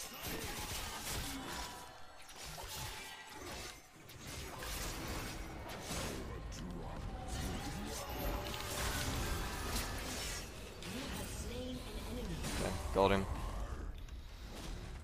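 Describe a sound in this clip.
Game spell effects and hits crackle and whoosh.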